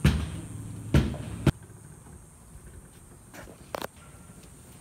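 A metal gate rattles and clanks.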